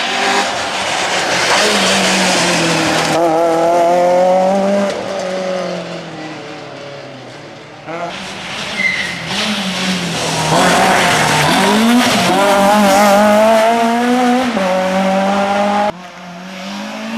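A rally car engine roars and revs hard as the car speeds past.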